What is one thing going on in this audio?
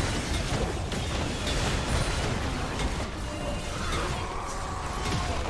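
Magic spells whoosh and crackle in a fast battle.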